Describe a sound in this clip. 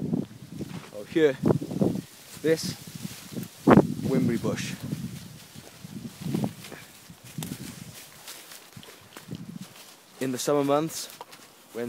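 A young man talks close to the microphone in short bursts.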